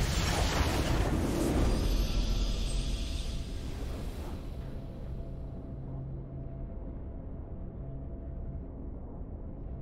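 A triumphant game fanfare swells and fades.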